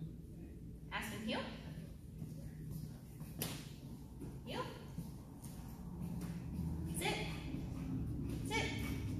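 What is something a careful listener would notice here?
A young woman gives short, sharp commands in an echoing hall.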